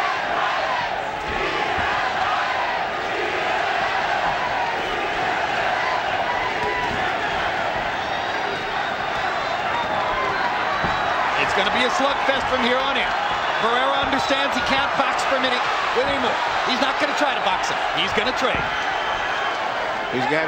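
A large crowd roars and cheers in a big echoing arena.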